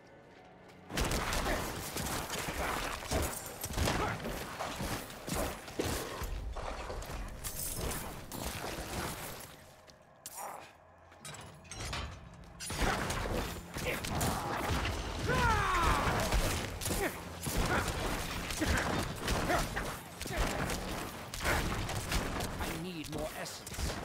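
Game combat sounds clash and thud.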